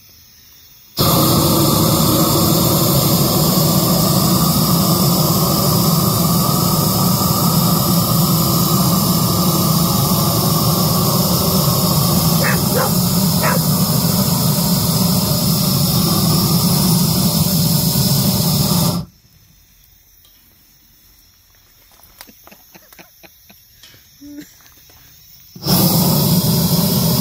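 A gas torch roars loudly and steadily.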